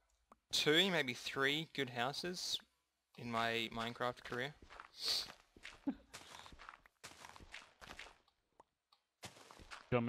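A shovel digs into dirt with soft crunching thuds.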